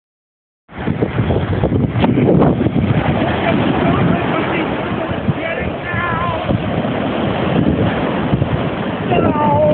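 Waves break and wash up onto a sandy shore.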